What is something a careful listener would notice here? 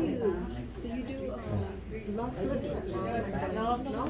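A middle-aged woman laughs.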